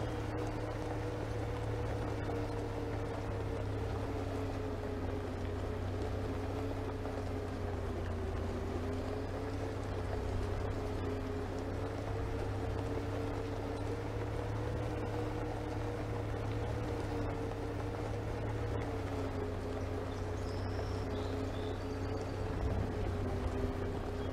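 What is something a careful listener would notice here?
Tyres rumble over a bumpy dirt road.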